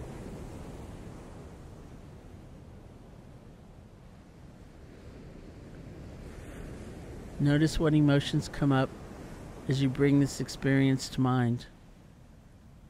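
Waves break and wash softly onto a beach in the distance.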